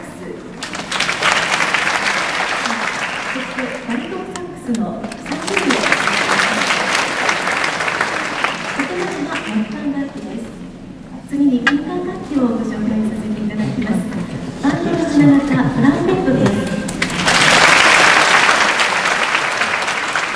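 A saxophone ensemble plays a lively tune in an echoing hall.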